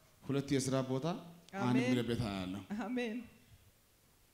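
A man speaks loudly with animation through a loudspeaker in a large hall.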